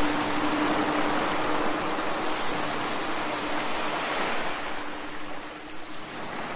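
Waves splash against rocks.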